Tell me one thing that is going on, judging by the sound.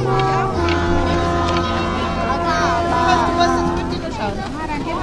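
A brass band plays a steady tune outdoors.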